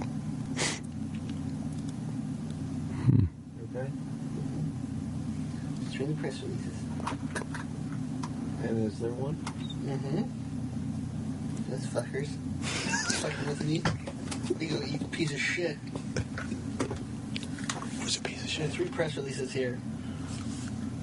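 Middle-aged men talk and joke with animation over microphones.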